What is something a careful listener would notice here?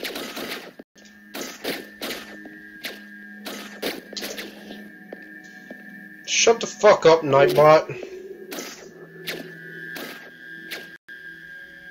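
Short electronic game sound effects swish and click again and again.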